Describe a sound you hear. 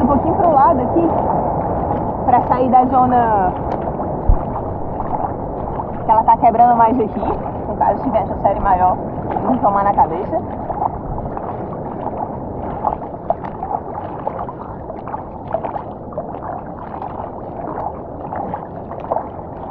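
Water splashes and sloshes as a swimmer's arm strokes through the sea.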